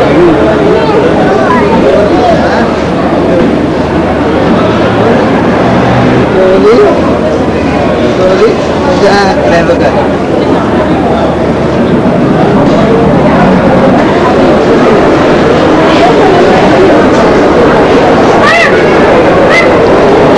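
A crowd of people chatter all around in a busy, echoing space.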